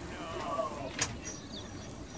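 A metal bucket handle clanks onto a metal pipe.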